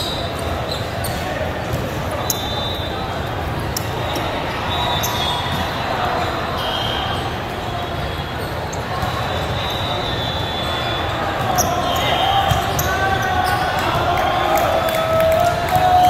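A volleyball thumps off players' arms and hands.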